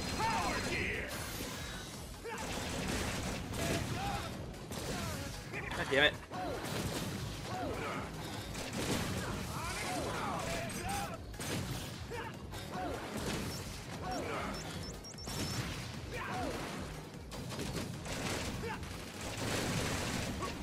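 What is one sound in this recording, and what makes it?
Explosions boom and crackle from a video game.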